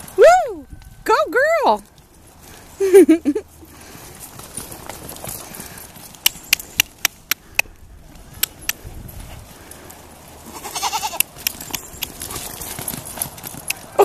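Hooves thud on soft ground as ponies trot.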